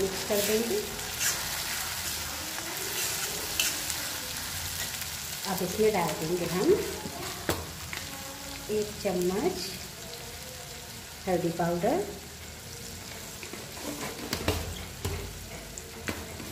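Food sizzles softly in hot oil.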